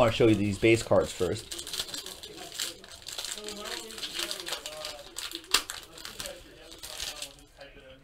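Plastic wrap crinkles as hands tear it open.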